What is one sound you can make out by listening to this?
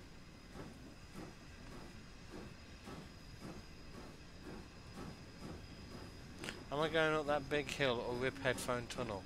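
A steam locomotive chuffs steadily.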